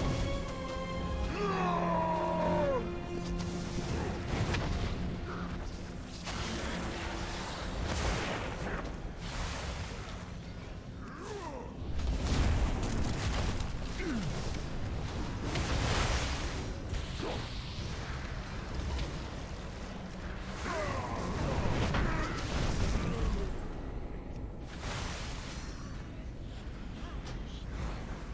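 Game spell effects and weapon hits crackle and clash repeatedly.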